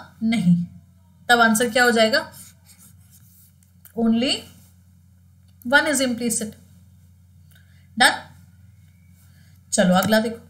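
A young woman speaks clearly into a close microphone, in short bursts with pauses.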